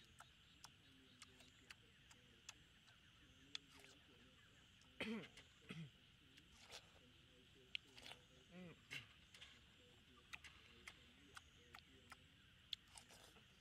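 A boy chews watermelon wetly.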